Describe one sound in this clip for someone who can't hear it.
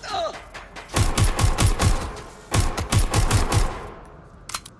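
A pistol fires in rapid bursts of loud shots in an echoing room.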